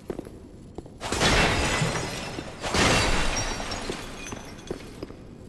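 Wooden objects smash and clatter loudly.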